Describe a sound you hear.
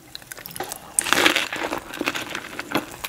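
Crisp wrapper bites crunch and squelch close up as a woman chews.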